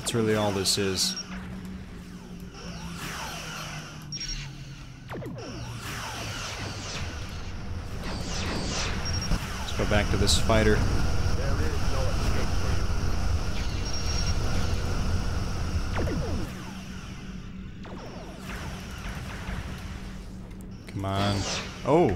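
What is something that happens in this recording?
Laser beams fire in long, buzzing bursts.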